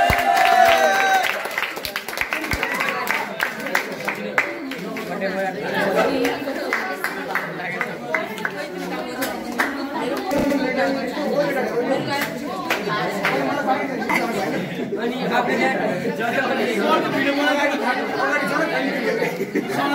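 A crowd of teenagers chatter in the background.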